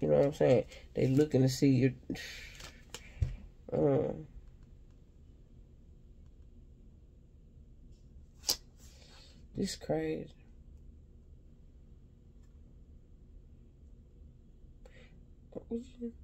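A hand picks up and handles stiff cards.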